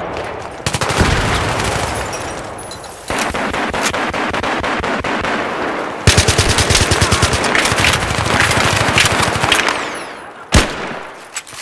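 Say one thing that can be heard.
Explosions boom and echo.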